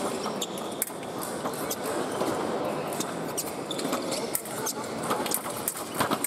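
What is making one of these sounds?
Fencing blades clash and click sharply.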